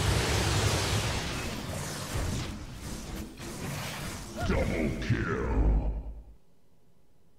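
Magical blasts crackle and whoosh in a fast fight.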